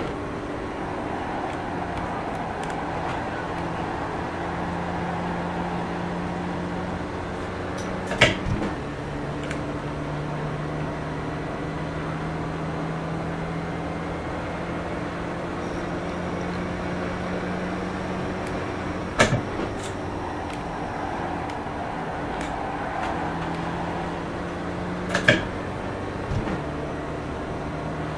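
A racing car engine drones steadily, rising and falling as it shifts gears.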